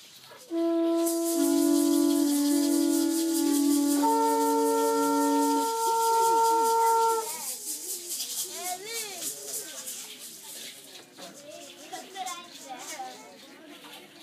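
Ankle rattles shake in a fast, steady rhythm as dancers stamp.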